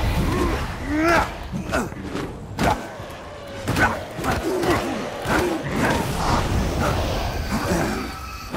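Fists thud against bodies in a brawl.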